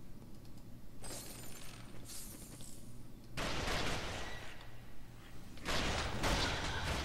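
Magic spells burst with loud crackling whooshes.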